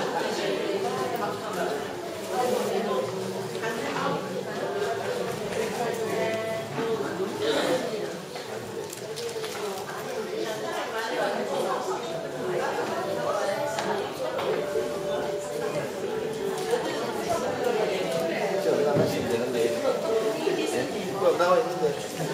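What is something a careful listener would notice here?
A crowd of women chat and laugh nearby.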